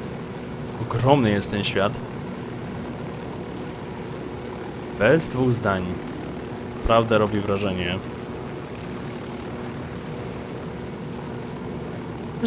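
A helicopter's rotor thumps and its engine hums steadily.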